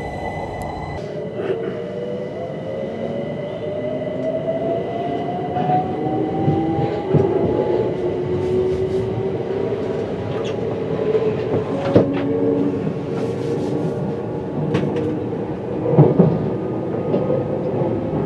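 A train's electric motor whines, rising in pitch as it speeds up.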